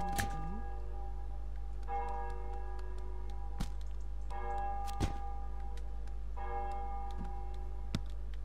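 A wire basket clatters and knocks on the ground.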